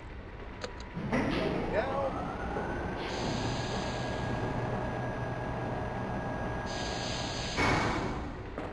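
A heavy machine lift hums and rumbles as it rises, then stops with a clunk.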